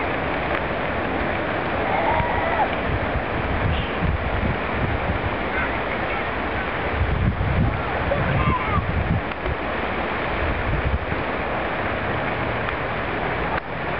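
A river flows and gurgles nearby.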